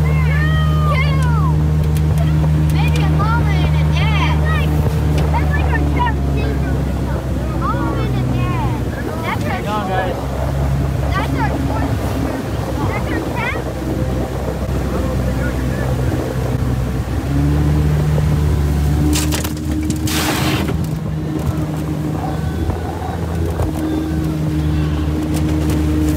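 A boat motor drones steadily and loudly.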